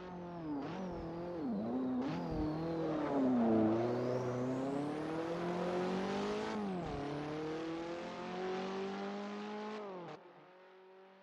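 A race car engine roars and revs up and down as the car speeds past.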